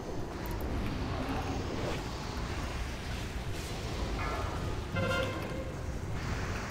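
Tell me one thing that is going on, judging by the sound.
Magic spells crackle and burst amid a noisy battle.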